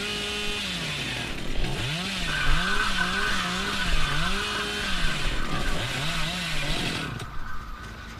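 A chainsaw engine revs up and down repeatedly.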